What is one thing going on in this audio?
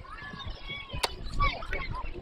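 A metal bat cracks against a ball.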